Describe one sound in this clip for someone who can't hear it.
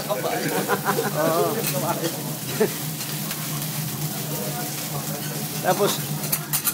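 Diners chat and murmur nearby.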